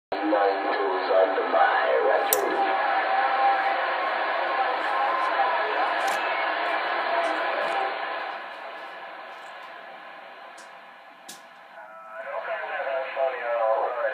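Distorted speech crackles from a radio receiver's loudspeaker.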